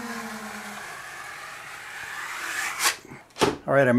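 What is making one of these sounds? A metal blade scrapes across a wall, smoothing a wet coat.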